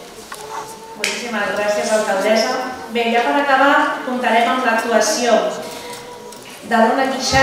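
A woman speaks calmly into a microphone, heard through loudspeakers.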